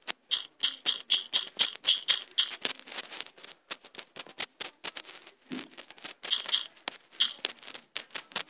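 Crops are planted in a game with quick, soft popping sounds.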